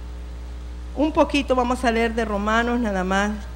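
A middle-aged woman speaks with feeling into a microphone.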